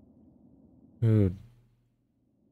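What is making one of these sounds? A man lets out a short, loud, falling vocal sound close to a microphone.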